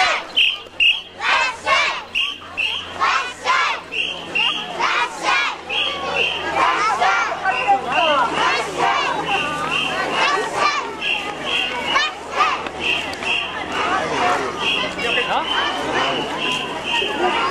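Young children chant and shout together in a lively crowd outdoors.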